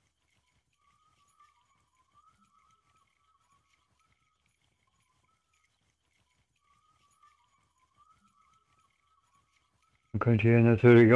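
A fishing reel whirs softly as line is wound in.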